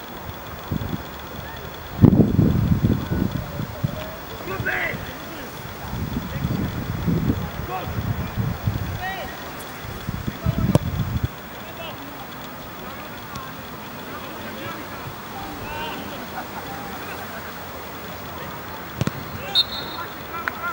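Young men shout from a distance across an open field.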